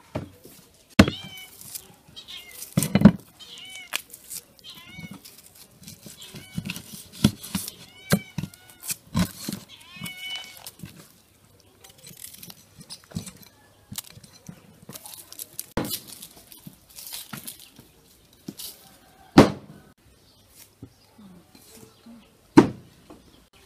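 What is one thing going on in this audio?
A cleaver chops through chicken on a wooden board with sharp knocks.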